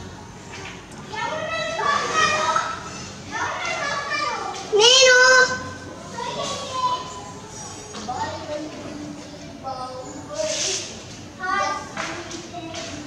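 A young boy talks and babbles close by.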